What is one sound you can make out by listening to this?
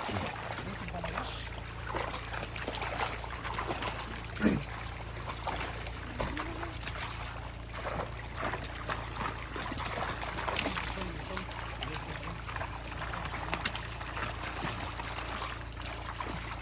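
Fish splash and thrash in shallow water.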